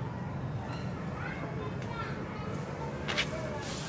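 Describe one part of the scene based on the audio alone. Leaves rustle as a monkey climbs through a tree.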